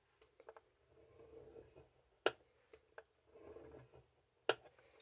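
A bone folder scrapes along a groove in a scoring board.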